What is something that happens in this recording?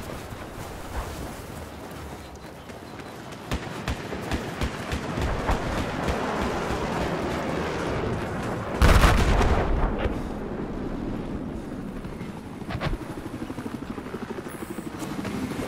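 A vehicle engine rumbles as it drives over rough ground.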